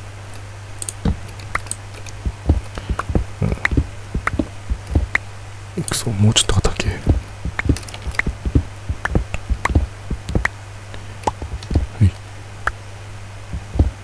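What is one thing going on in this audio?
A pickaxe taps repeatedly at sand blocks, with crumbling thuds as the blocks break.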